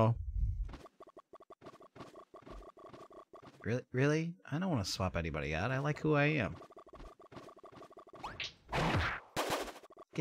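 A bouncy electronic tune plays.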